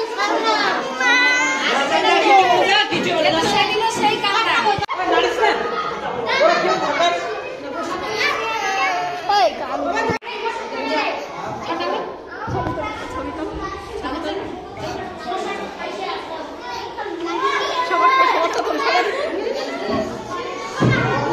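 A young girl cries and sobs loudly up close.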